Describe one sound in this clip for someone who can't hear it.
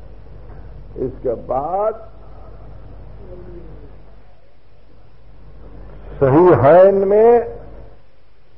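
An elderly man speaks in a drawn-out, chanting voice, heard through an old recording.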